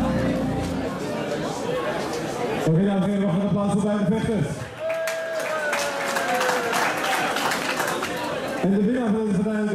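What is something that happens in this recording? A crowd cheers and claps in a large hall.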